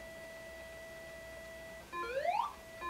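A retro video game plays a steady beeping tone.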